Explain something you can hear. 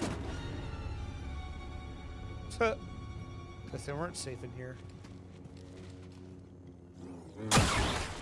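A lightsaber hums and buzzes.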